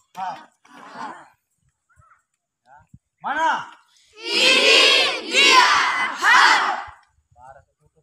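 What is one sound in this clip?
A group of young people shout loudly together in unison.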